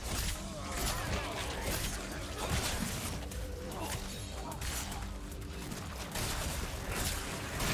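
Heavy blows thud as a fight rages at close range.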